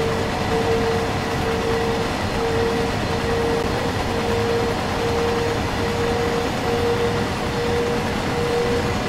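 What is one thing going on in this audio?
A freight train rumbles steadily along the rails.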